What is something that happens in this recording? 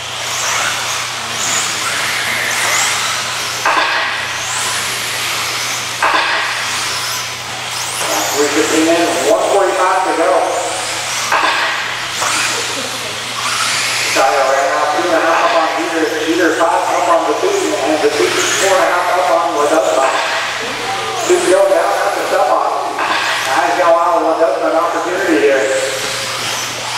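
Small electric model cars whine as they race past, their motors rising and falling in pitch.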